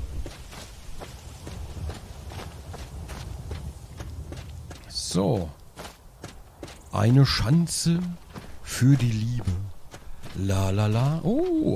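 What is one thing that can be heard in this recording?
Footsteps crunch steadily over dry grass and dirt.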